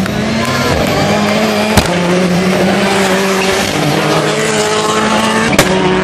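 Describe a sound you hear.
A rally car engine roars loudly at high revs, shifting pitch through the gears.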